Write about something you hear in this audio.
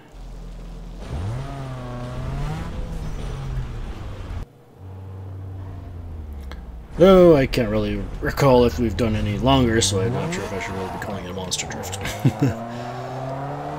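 A car engine revs and roars, rising and falling in pitch.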